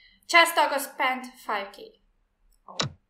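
A woman speaks briefly and cheerfully over an online call.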